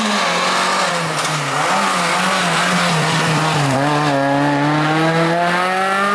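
Tyres squeal on the tarmac as a rally car takes a bend.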